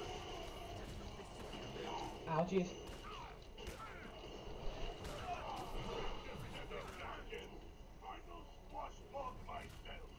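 Heavy blows thud and crash in a game fight.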